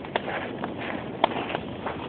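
Boots crunch on gravel.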